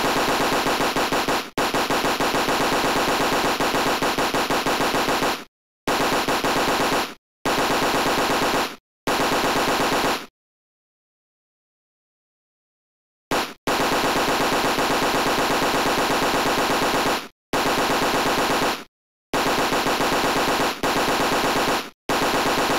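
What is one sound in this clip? Rapid arcade gunfire rattles nonstop.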